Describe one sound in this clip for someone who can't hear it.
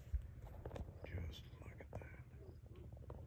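An elk bugles with a high, whistling call in the distance.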